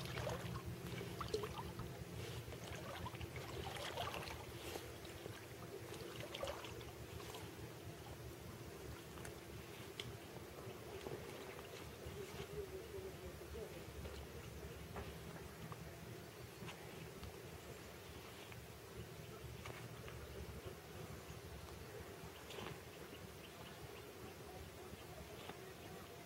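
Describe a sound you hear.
A man wades and splashes through shallow water.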